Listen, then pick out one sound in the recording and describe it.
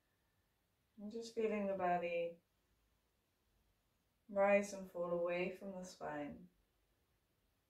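A young woman speaks calmly and slowly, close by.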